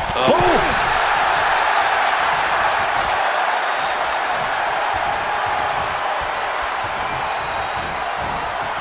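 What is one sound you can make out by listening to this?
A large crowd cheers and roars loudly throughout.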